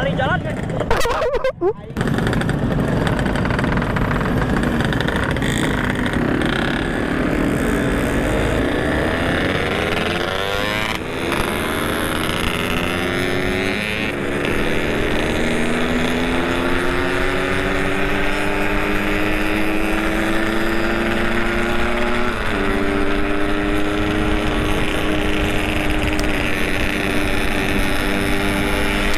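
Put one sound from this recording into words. A motorcycle engine idles close by, then revs and accelerates, rising in pitch through the gear changes.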